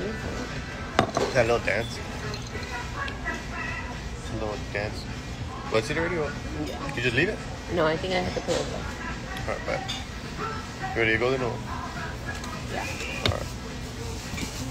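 A young man talks casually and close up.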